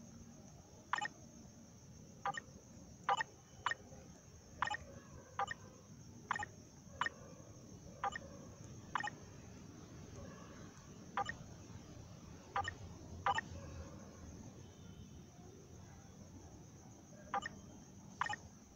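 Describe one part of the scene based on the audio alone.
Short menu clicks sound at irregular intervals.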